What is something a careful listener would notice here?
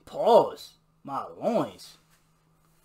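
A man laughs loudly in short bursts.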